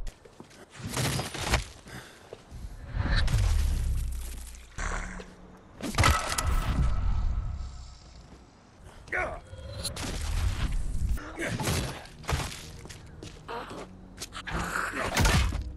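Heavy melee blows thud and squelch into flesh.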